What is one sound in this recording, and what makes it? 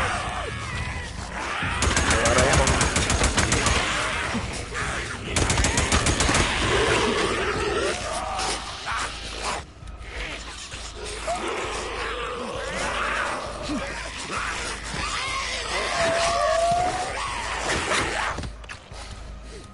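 A crowd of creatures snarls and shrieks.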